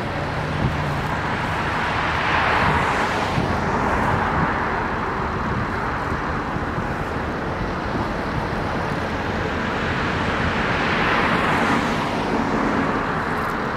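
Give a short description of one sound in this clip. Cars drive past one at a time on a nearby road, each swelling and fading away.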